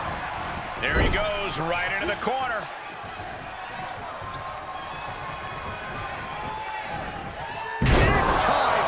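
Heavy thuds sound as wrestlers slam onto the ring mat.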